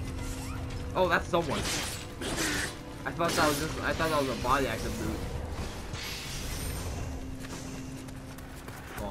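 Steel blades clash sharply.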